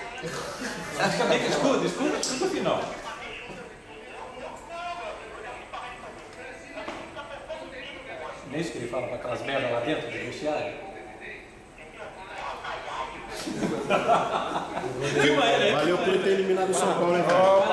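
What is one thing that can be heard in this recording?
Young men laugh loudly close by.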